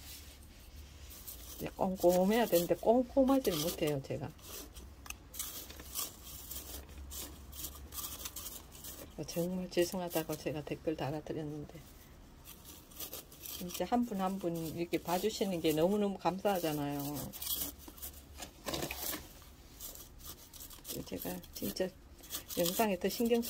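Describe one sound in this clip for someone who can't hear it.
A small tool scrapes and pokes through dry soil in a pot.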